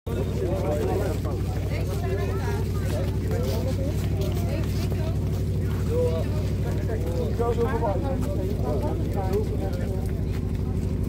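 Several adults talk nearby.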